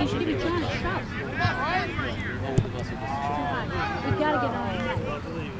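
Several young men shout and call out across an open field.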